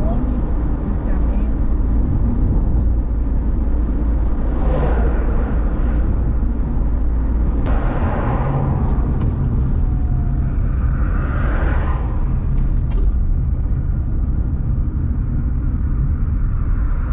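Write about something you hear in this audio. A car's engine hums steadily with low road rumble from inside the car.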